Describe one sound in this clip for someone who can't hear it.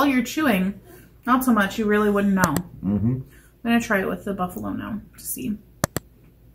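A woman talks casually, close to a microphone.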